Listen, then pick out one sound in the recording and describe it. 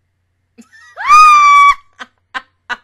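A young woman sings a high note loudly into a microphone.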